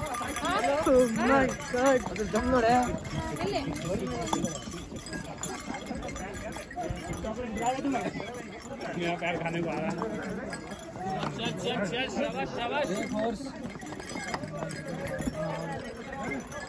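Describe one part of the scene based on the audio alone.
Horses' hooves thud on a dirt path.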